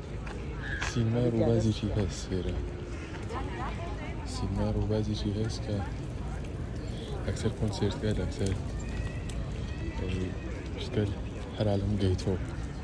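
A group of adults chat nearby with animation.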